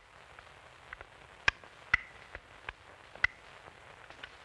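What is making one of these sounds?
Footsteps tap on a hard floor in an echoing room.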